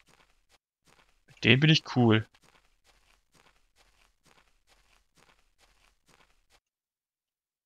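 Footsteps tread steadily on dirt ground.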